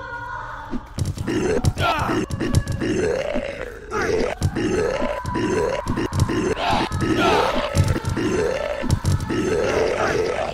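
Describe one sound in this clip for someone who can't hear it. A heavy weapon strikes a creature with thudding blows.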